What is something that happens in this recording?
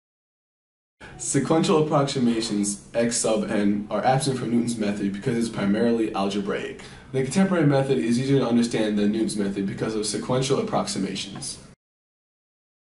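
A young man speaks calmly and close to the microphone.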